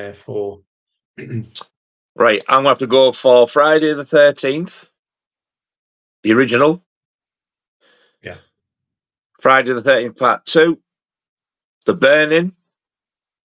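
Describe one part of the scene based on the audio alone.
A man with a deep voice talks with animation over an online call.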